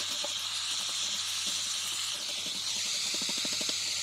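A wire brush scrapes metal.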